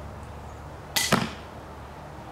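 A projectile strikes a target with a sharp smack.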